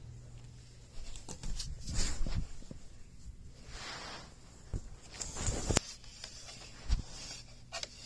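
Something brushes and bumps against a carpet at close range.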